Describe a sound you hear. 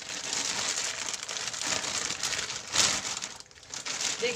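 A plastic sheet crinkles as hands roll it.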